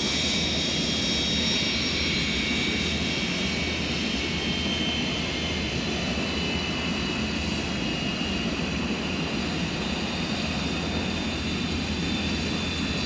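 A jet airliner's engines roar and whine as it rolls down a runway.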